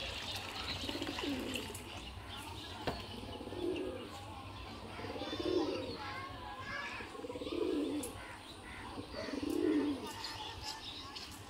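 Pigeons coo in low, rolling calls again and again.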